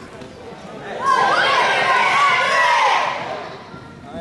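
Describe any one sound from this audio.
Children shout and cheer loudly in a large echoing gym.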